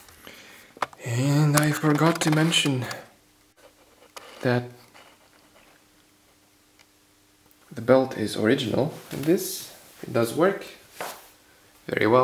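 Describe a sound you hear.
A man's voice plays back through a small cassette recorder speaker.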